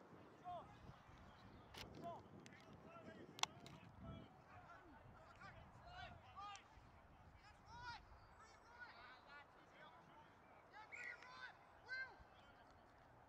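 Young men shout and call to each other across an open field, some distance away.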